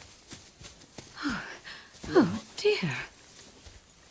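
A man exclaims in surprise, close by.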